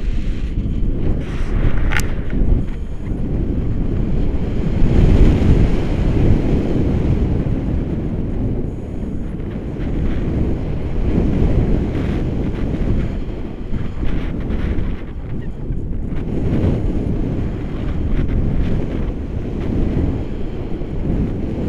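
Strong wind buffets a close microphone outdoors.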